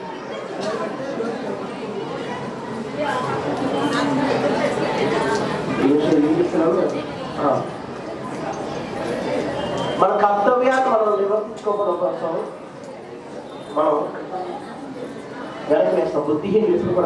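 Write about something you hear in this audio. A man talks calmly into a microphone through a loudspeaker.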